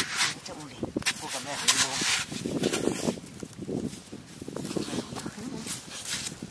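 Hands scrape and crumble damp clay soil.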